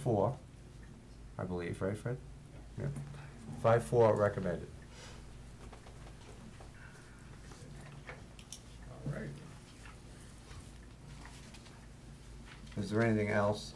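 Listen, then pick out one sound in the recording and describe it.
A man speaks calmly into a microphone, with short pauses.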